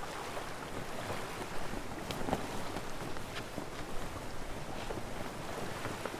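Cloth flaps in the wind outdoors.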